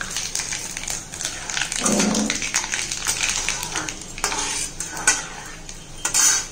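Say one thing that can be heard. A metal spatula scrapes against a metal pan.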